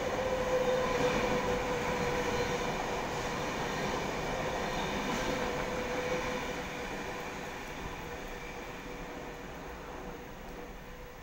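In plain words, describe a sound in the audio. A train hums and rumbles in the distance, slowly fading away.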